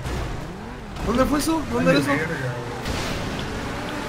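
A car crashes through a barrier with a loud crunch.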